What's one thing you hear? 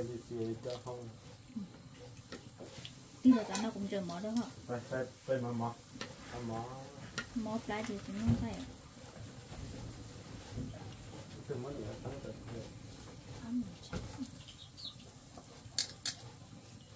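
Metal tongs clink against a grill.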